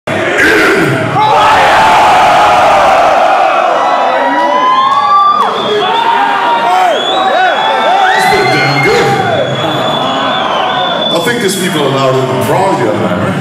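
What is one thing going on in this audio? A crowd cheers and whistles loudly in a large hall.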